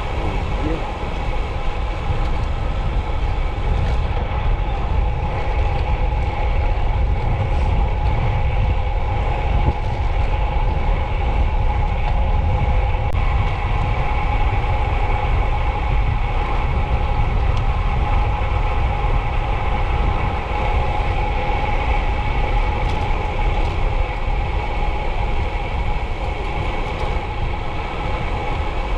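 Wind roars and buffets loudly past the microphone.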